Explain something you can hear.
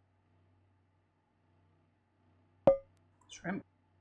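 Food is set down onto a plate with a short clatter.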